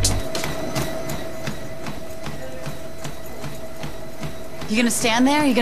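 Footsteps thump steadily on a running treadmill.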